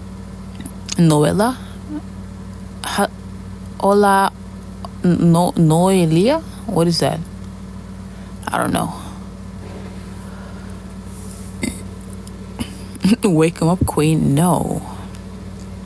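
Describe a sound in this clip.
A young woman speaks close to a phone microphone in short, lively bursts.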